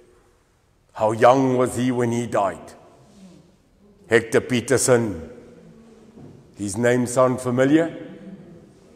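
A middle-aged man speaks calmly in bursts, with a slight echo in a large room.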